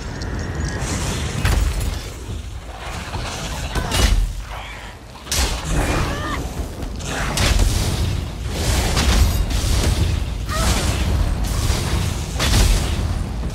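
A giant wasp buzzes loudly.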